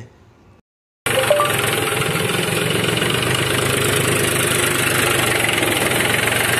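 A tractor's diesel engine rumbles steadily close by.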